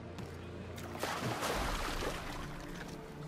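A man splashes into the water.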